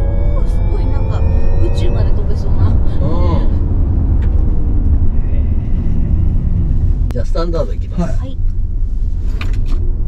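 A man talks calmly inside a car.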